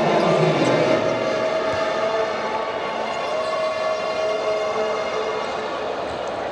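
A large crowd murmurs and chatters in an echoing arena.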